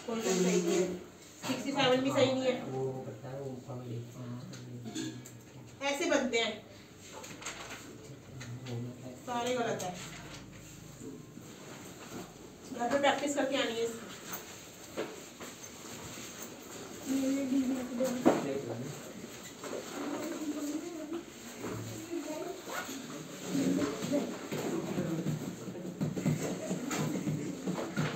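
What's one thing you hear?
Young people talk casually nearby.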